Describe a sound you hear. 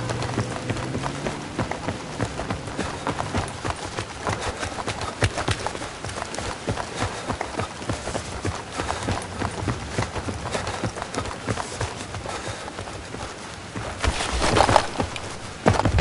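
Quick footsteps run across hard pavement.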